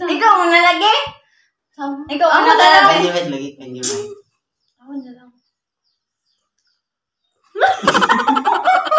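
Young women laugh loudly close by.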